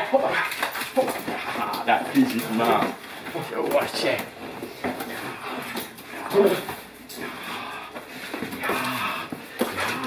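A dog growls and snarls.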